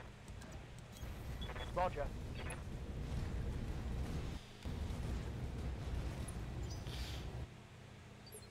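A giant walking robot rumbles with deep, heavy thuds.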